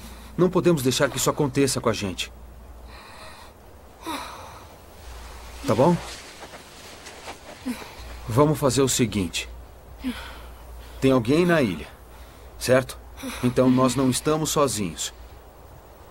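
A young woman speaks softly and tearfully, close by.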